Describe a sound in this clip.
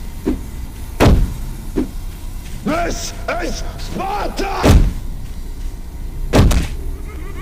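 A gun fires loud booming shots.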